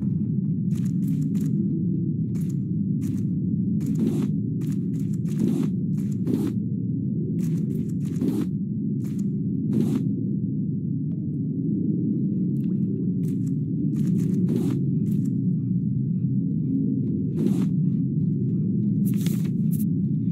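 Short clicking pops sound as items are picked up.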